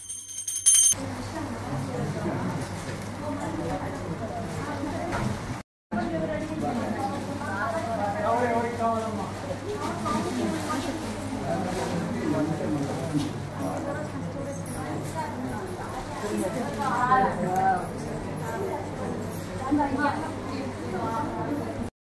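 Several women chat and talk over one another nearby.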